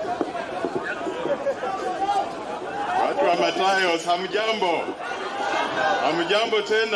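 A large crowd of men and women chatter and shout outdoors.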